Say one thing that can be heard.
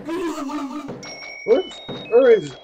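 Short electronic beeps step upward in pitch.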